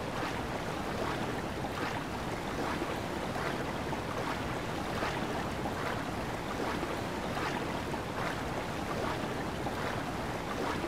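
Water splashes with regular swimming strokes.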